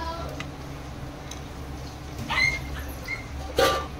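A metal spatula scrapes and knocks against a pan of boiled eggs.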